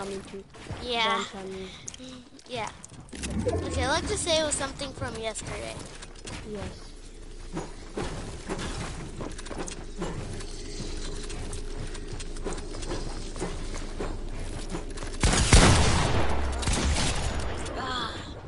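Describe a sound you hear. Building pieces clack into place in quick bursts.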